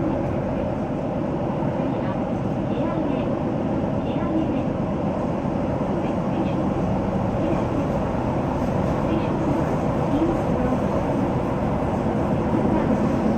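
A train rumbles steadily through a tunnel, its wheels clattering on the rails.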